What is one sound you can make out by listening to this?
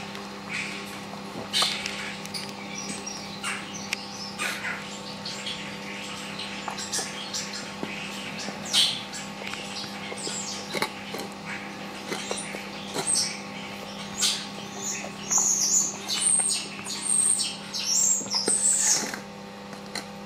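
A bear cub chews and slurps food noisily from a metal bowl.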